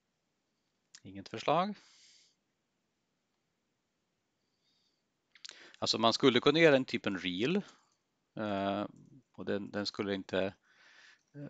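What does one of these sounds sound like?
A man speaks calmly and close to a microphone, in short bursts between silences.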